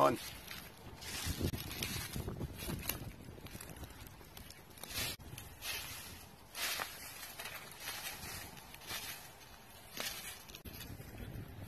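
Dry leaves crunch and rustle underfoot.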